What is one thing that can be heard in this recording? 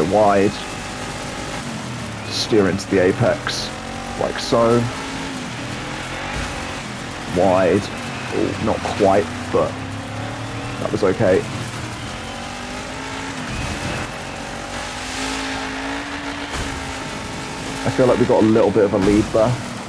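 A buggy engine roars and revs up and down.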